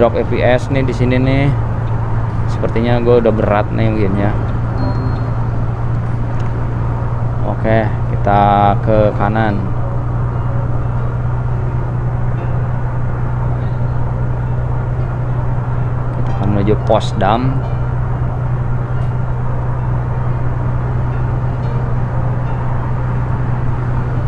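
A bus engine drones steadily at speed.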